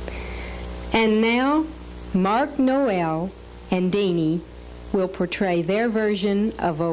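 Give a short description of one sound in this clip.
A woman sings through a microphone with a wavering voice.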